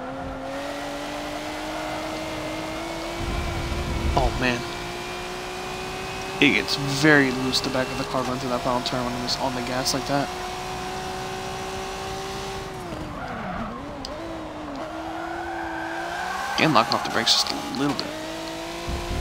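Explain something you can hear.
A racing car engine roars steadily, rising in pitch as it speeds up, then drops as it slows for a bend.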